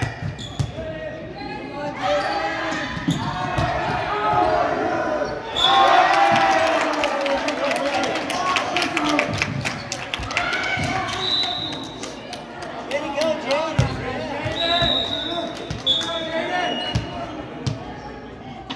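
Young players shout and call out to each other in a large echoing gym.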